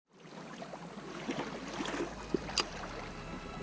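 A fishing reel clicks as line is wound.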